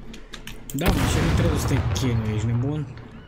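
A young man speaks through a microphone.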